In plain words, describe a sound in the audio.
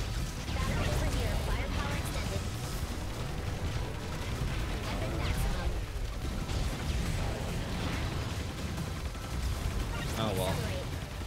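Video game blasts and explosions crackle rapidly.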